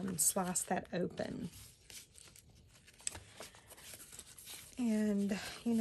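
Stiff paper rustles and scrapes as hands handle it.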